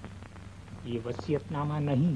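A man speaks firmly.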